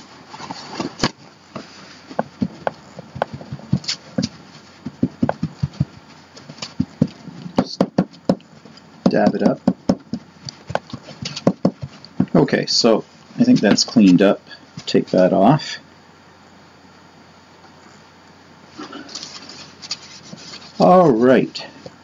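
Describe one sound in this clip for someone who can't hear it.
A cloth rubs and wipes against a hard surface.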